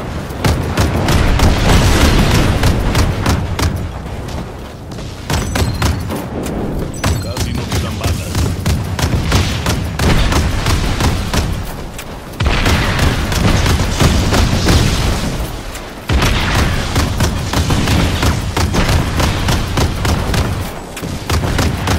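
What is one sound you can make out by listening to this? Rapid gunfire crackles without a break.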